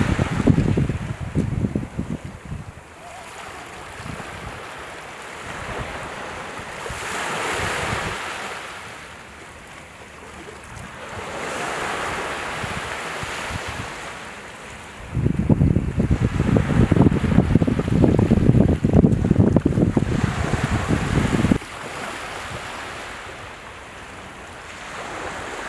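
Small waves wash and break gently onto the shore, rising and falling in slow surges.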